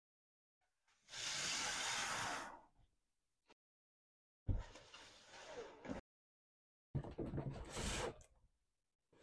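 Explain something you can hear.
A cardboard box scrapes and slides across a hard surface.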